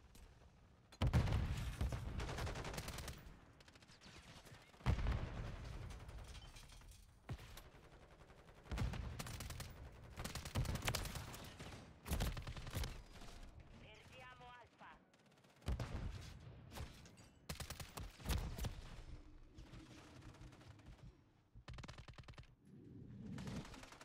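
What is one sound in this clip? Gunfire from a video game bursts in loud volleys.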